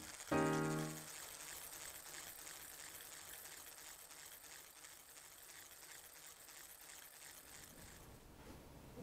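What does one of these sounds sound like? An electric hand mixer whirs softly in a bowl.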